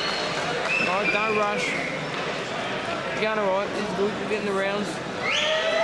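People in a crowd whistle loudly.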